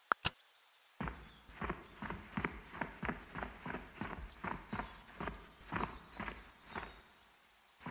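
Armoured footsteps crunch over rough ground.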